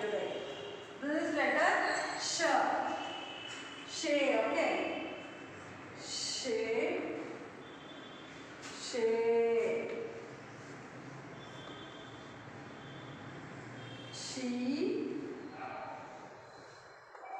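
A young woman speaks slowly and clearly, as if teaching, in a room with some echo.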